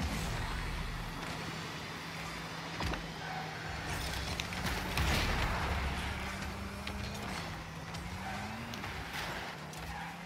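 A car boosts forward with a rushing whoosh.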